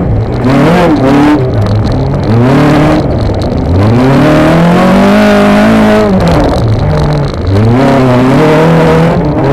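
A four-cylinder petrol engine in a stripped race car revs hard, rising and falling with each gear change.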